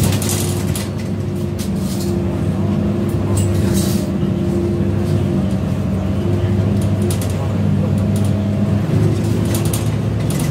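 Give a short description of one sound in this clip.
Loose fittings rattle and tick inside a moving bus.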